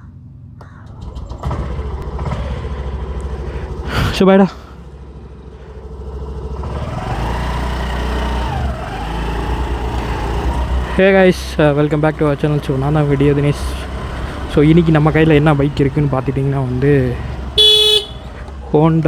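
A scooter engine hums steadily up close as it rides slowly.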